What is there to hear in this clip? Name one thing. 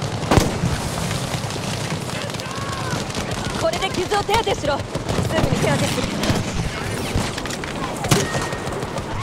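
A rifle fires sharply, close by.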